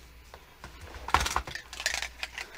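Marker pens rattle in a metal tin.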